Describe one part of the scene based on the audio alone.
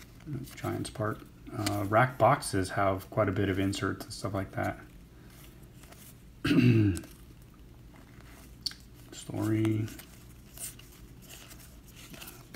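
Trading cards slide and flick against each other in a hand.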